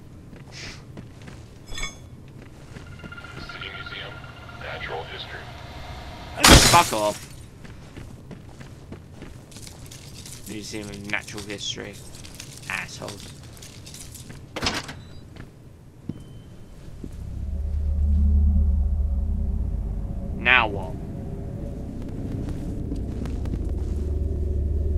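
A young man talks in a worried voice close to a microphone.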